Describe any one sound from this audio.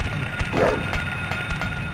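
A metal pipe swings and strikes with a thud.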